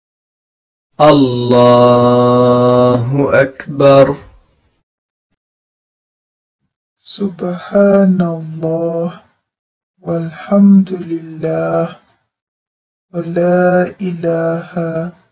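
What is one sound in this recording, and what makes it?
A man chants a prayer slowly in a deep, steady voice.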